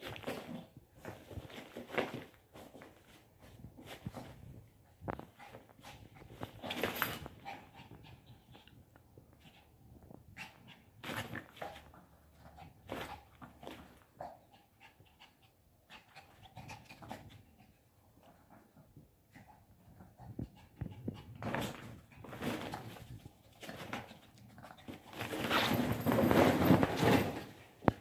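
A small dog rustles against a mesh tent.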